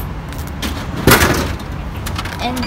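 A drink bottle drops with a thud into a vending machine's tray.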